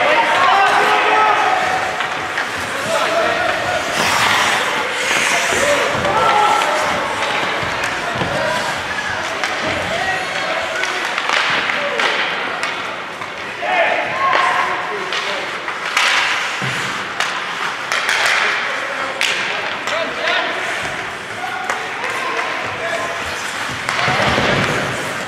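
Ice skates scrape and hiss across the ice.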